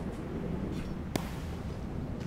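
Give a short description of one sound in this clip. A small blast bursts with a sharp crack.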